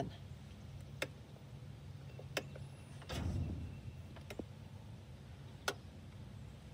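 Meter probes click and tap against metal terminals.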